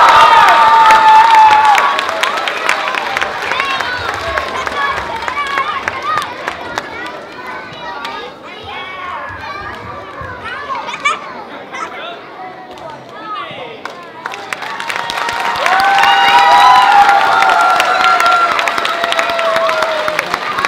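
An audience claps and cheers in an echoing hall.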